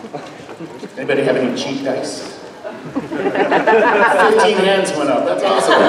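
A man speaks into a microphone over loudspeakers, addressing the audience.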